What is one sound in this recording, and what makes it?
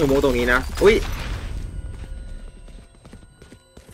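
A grenade bursts with a sharp bang.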